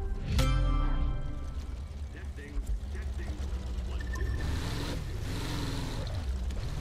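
A speedboat engine rumbles low and steady.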